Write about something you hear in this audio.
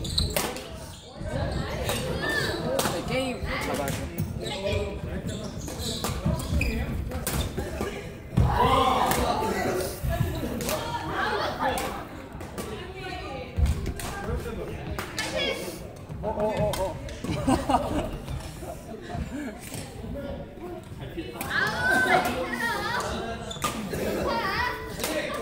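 Shuttlecocks are struck with rackets, with sharp hits echoing in a large hall.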